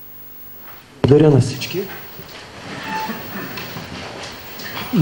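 Chairs creak and shuffle as a group of people sit down.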